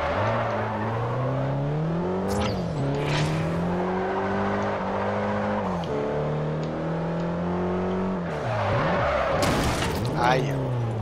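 Tyres screech as a car slides.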